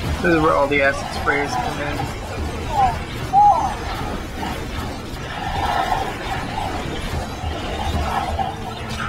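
A large monster growls and roars.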